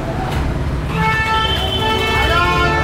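Motorbike horns honk.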